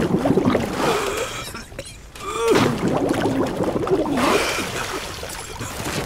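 Water splashes and sloshes loudly.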